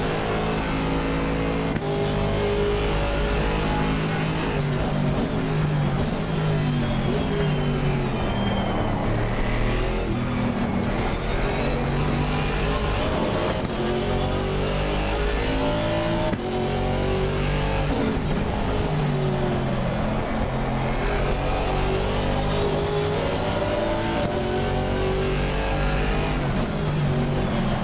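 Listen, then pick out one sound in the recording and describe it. A race car engine roars, revving up through the gears and dropping as it brakes for corners.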